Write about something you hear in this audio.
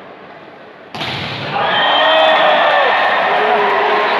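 A large crowd bursts into loud cheering.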